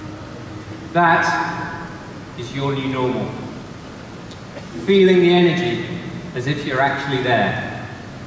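A man speaks into a microphone, amplified through loudspeakers in a large hall.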